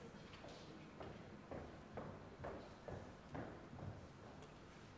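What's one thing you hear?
Footsteps tap across a wooden stage in a large hall.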